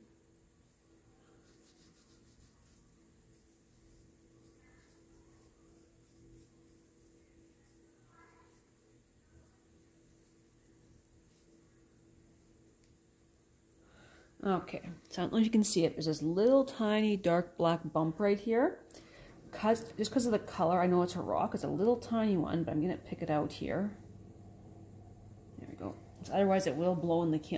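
Fingers softly rub and smooth wet clay.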